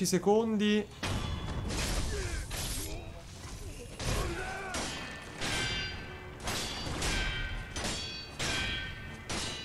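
Swords clash and ring sharply.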